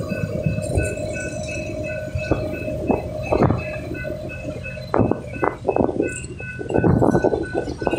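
Train wheels clack and squeal over the rails.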